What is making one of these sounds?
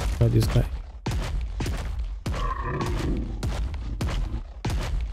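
Heavy creature footsteps thud and splash through shallow water at a steady pace.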